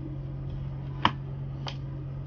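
A charger plug clicks into a laptop's socket.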